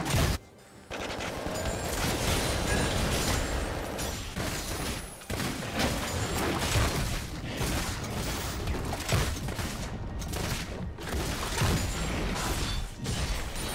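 Magic blasts and sword hits crackle in a fast game fight.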